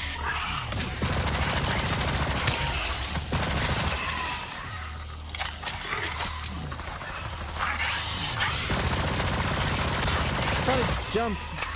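A video game energy weapon fires in rapid bursts.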